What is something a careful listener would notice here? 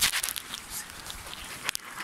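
Fabric rustles as a hand handles it.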